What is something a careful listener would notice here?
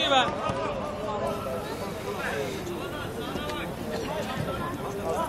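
Men shout to each other at a distance, outdoors.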